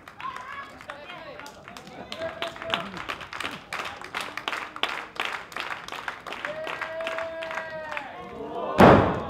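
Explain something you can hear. An audience claps rapidly in a large echoing hall.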